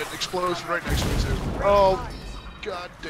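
An explosion booms and crackles.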